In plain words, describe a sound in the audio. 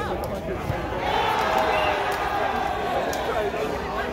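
A group of young men cheers and shouts loudly.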